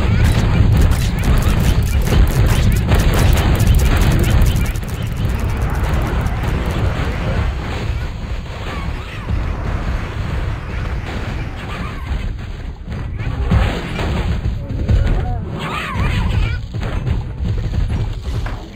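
Game plants fire rapid popping shots and bursts.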